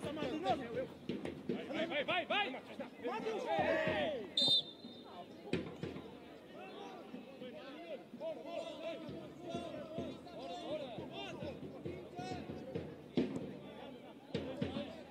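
A crowd of spectators shouts and calls out in the distance outdoors.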